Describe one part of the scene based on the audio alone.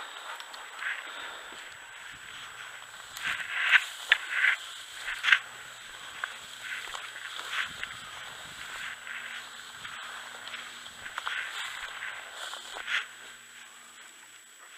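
Dry tall grass rustles and swishes as someone walks through it.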